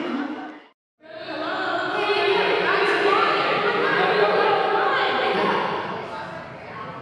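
Several young women laugh together close by.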